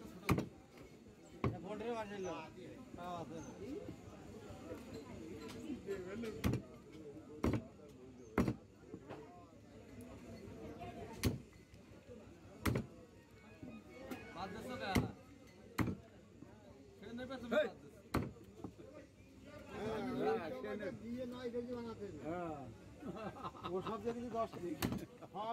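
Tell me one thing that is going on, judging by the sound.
A heavy cleaver chops meat on a wooden block with sharp, loud thuds.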